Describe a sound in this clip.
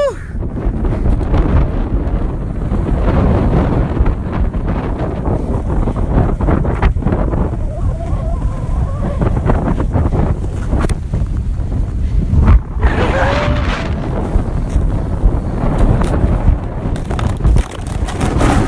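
Skis or a snowboard scrape and hiss over snow.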